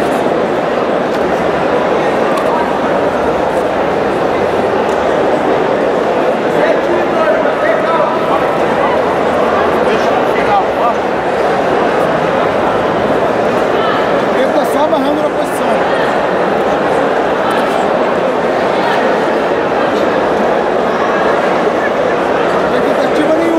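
A large crowd murmurs and shouts in a big echoing hall.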